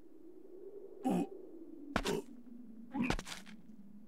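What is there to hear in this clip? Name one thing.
Footsteps thud on rocky ground.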